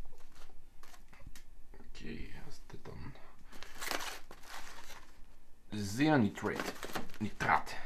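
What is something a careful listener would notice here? Cardboard boxes scrape and knock as a hand handles them.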